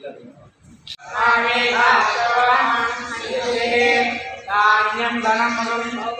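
A man chants loudly in a prayerful voice.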